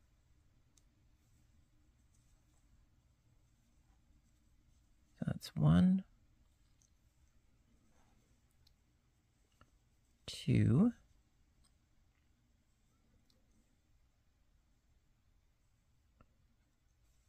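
A crochet hook softly clicks and rustles through yarn.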